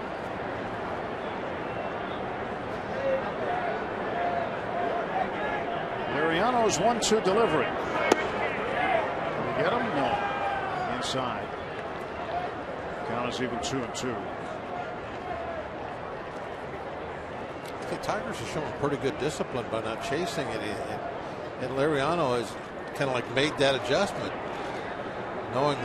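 A stadium crowd murmurs in the open air.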